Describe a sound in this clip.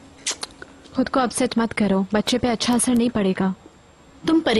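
A young woman speaks softly with emotion, close by.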